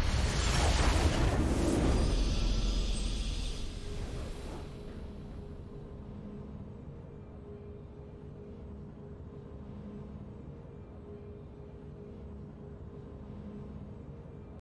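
A triumphant victory fanfare plays and then fades to a quiet hum.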